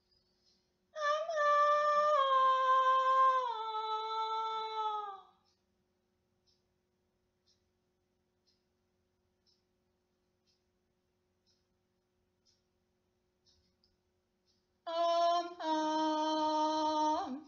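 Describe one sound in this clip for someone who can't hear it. A young woman sings long, sustained notes close by, sliding downward in pitch.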